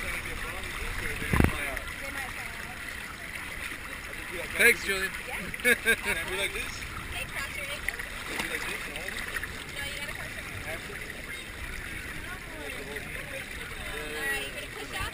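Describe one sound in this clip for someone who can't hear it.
Water flows and splashes down a slide.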